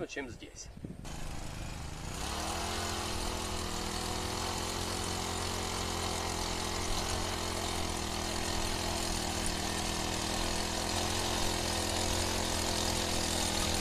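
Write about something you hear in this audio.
A small petrol engine starts up, revs and runs steadily.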